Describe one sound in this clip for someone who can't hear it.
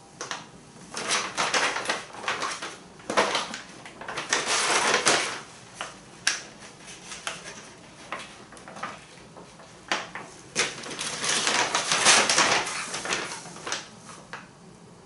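Plastic packets crinkle and rustle as they are handled.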